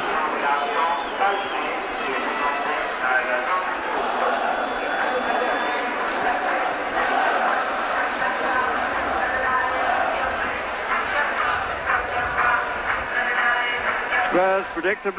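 A large crowd sings together in an open stadium.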